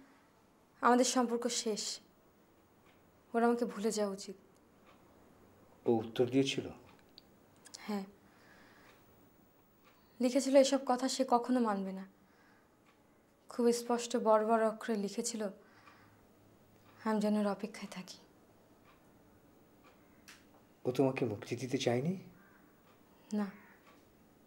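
A woman speaks close by in short, tense phrases with pauses between them.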